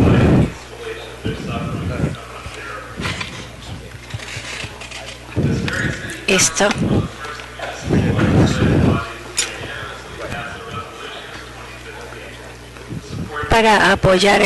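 An older man speaks calmly into a microphone in a large echoing hall.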